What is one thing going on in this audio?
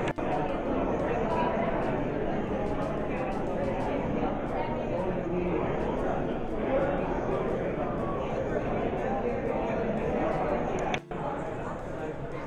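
A crowd of people chatter in an indoor hall.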